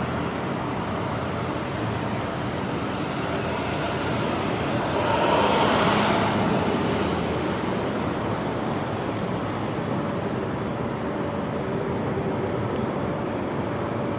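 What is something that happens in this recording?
A plastic shell scrapes and rolls on concrete outdoors.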